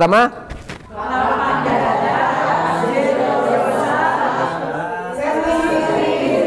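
A group of men and women sing along together.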